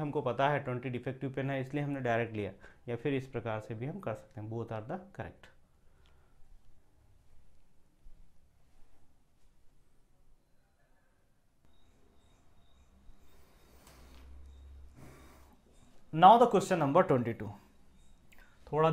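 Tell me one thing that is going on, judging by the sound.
A man explains calmly and clearly, close to a microphone.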